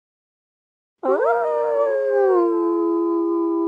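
A low musical chime rings out and holds.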